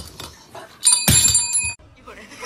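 A small bell dings.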